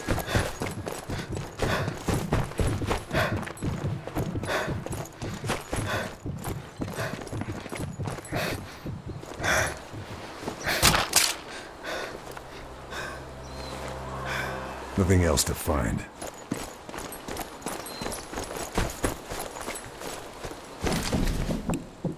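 Footsteps crunch steadily on gravel and grass.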